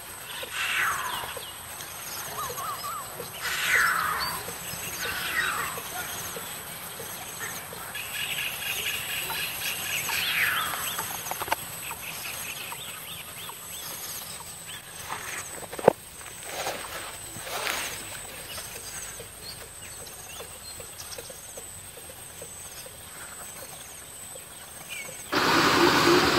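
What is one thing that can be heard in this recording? Birds sing and call from the treetops with descending whistles.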